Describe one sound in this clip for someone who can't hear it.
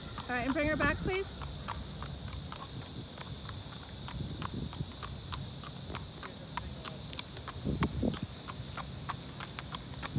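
Horse hooves clop steadily on a paved road.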